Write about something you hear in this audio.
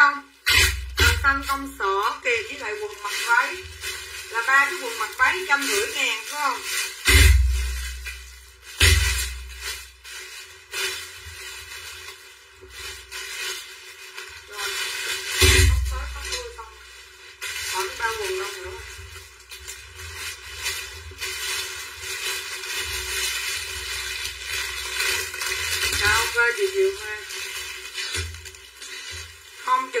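Clothes rustle as a woman handles them.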